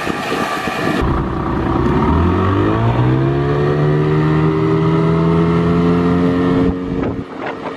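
An outboard motor revs up close, rising in pitch and then holding a steady roar.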